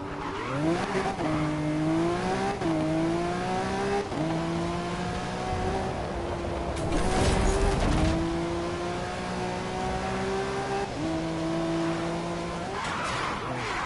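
A sports car engine roars at high speed, its pitch climbing with each gear.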